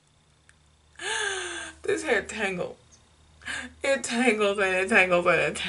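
A young woman speaks cheerfully and close up.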